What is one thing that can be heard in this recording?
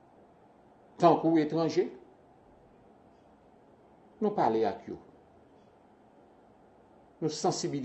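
A middle-aged man speaks calmly in short phrases over an online call.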